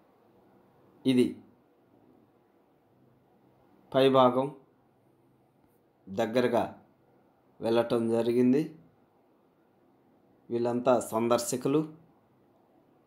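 A middle-aged man speaks calmly in short phrases over an online call.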